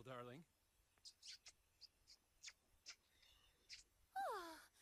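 A man and a woman kiss with soft smacking sounds.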